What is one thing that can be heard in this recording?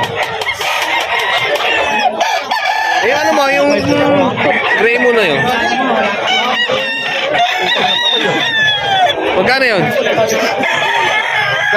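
A man talks close by with animation.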